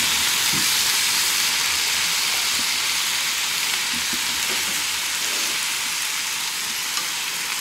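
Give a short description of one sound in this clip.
Chopsticks tap against a pan.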